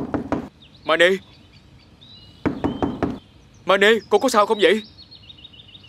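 A young man calls out loudly.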